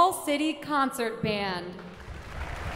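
A young woman speaks with animation into a microphone in a large echoing hall.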